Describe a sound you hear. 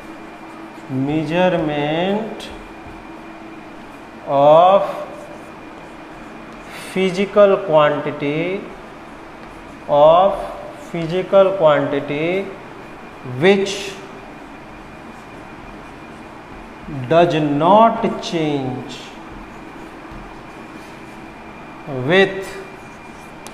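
A man speaks slowly and calmly, in short phrases with pauses.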